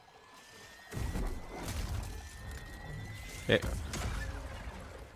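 A blaster bolt explodes with a loud, deep boom.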